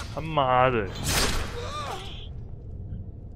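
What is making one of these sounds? A game character shouts during a fight.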